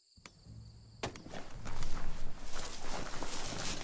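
Quick footsteps patter across wooden boards.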